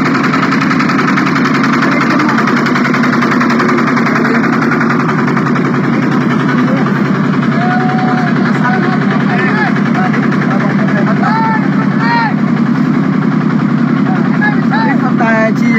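A small tractor engine chugs loudly and steadily close by.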